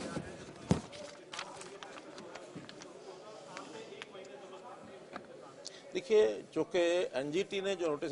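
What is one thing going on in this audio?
An elderly man speaks calmly into microphones.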